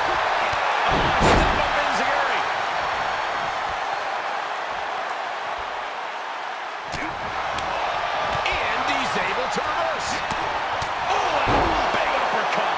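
Heavy thuds ring out as bodies slam onto a wrestling ring mat.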